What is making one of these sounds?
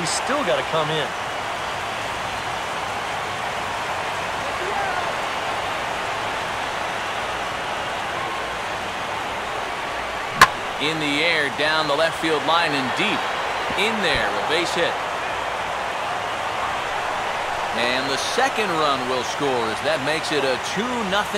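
A large crowd murmurs steadily in a stadium.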